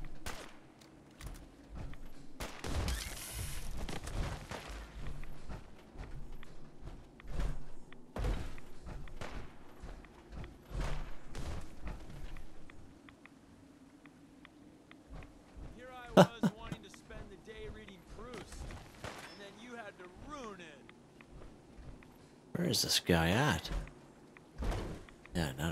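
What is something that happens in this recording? Heavy armoured footsteps thud and crunch on rubble.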